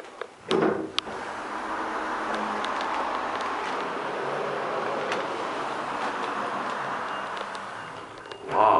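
An elevator hums steadily as it travels.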